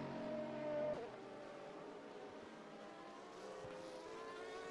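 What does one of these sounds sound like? Race car engines whine in the distance.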